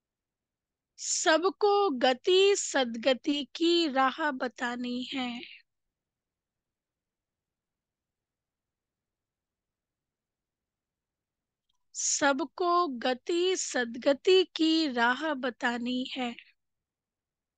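A woman speaks calmly through a microphone, with long pauses.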